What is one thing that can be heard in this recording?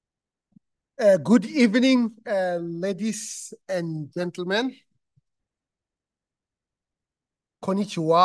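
A man speaks warmly into a microphone, heard through an online call.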